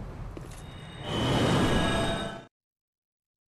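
A bright shimmering chime rings out briefly.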